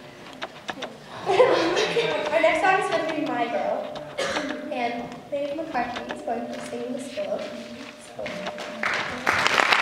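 A young woman speaks into a microphone, heard through loudspeakers.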